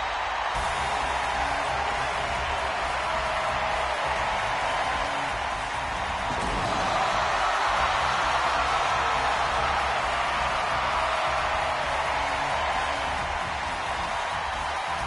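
A large crowd cheers and roars steadily.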